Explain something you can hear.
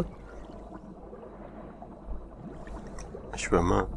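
Water churns and bubbles in a muffled rush.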